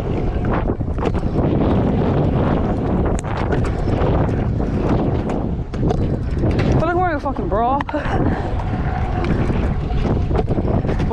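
Scooter wheels roll and rumble loudly over rough concrete.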